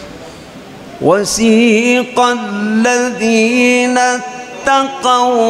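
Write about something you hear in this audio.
An elderly man sings loudly and with feeling into a microphone, in long held notes.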